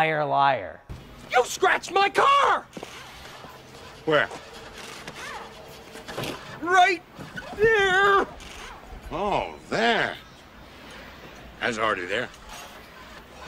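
A man talks and shouts with loud, animated expression.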